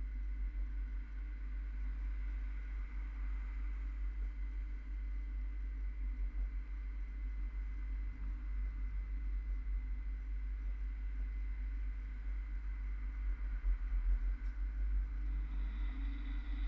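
Traffic hums steadily along a wide road.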